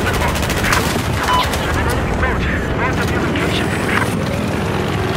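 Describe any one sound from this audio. Rapid gunfire rattles and cracks.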